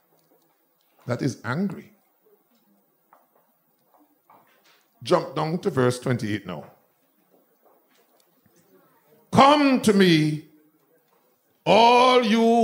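A man preaches with fervour into a microphone, in short bursts with pauses.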